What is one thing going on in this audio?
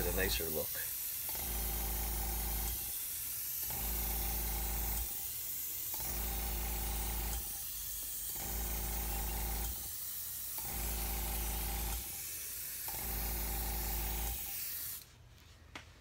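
An airbrush hisses and hums in repeated bursts.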